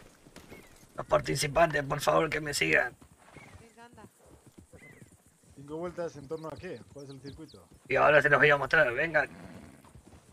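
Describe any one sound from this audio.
Men talk to each other with animation.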